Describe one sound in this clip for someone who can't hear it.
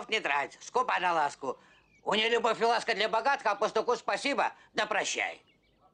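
An elderly man speaks with a rough, excited voice.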